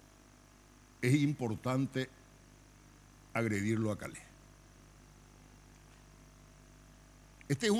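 An elderly man speaks calmly into a microphone in short bursts.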